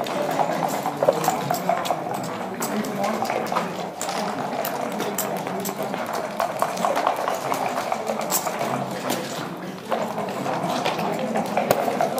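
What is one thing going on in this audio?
Game checkers click against each other as a hand moves them on a wooden board.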